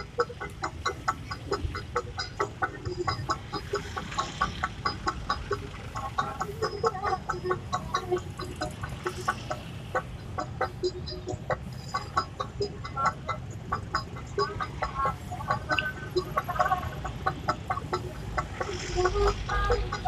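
Motorcycle engines idle and rumble close by in traffic.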